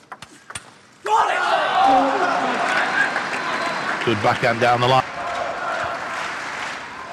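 A crowd cheers and applauds loudly in a large hall.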